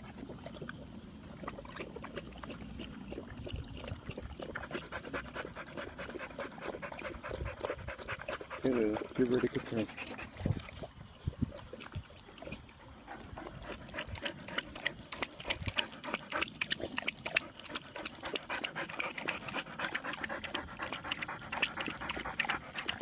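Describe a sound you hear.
Dogs lap water quickly and wetly from a metal bowl.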